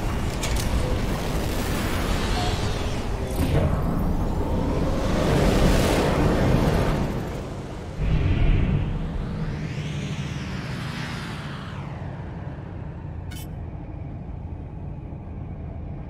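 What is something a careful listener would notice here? A spaceship engine roars and surges as it speeds up.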